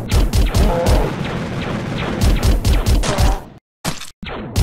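Game explosions boom and crackle.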